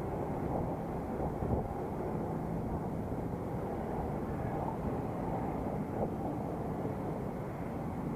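Traffic rumbles past nearby.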